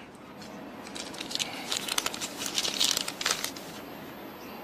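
Paper crinkles and rustles in someone's hands.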